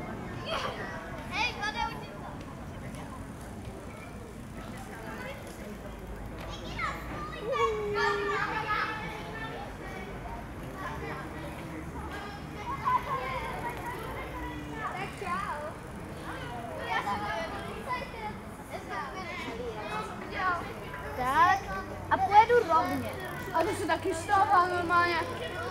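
Bicycle tyres roll over smooth pavement.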